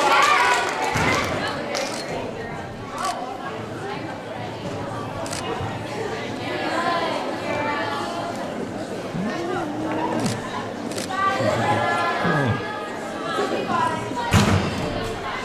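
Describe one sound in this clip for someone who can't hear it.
A gymnast's feet thump on a wooden beam.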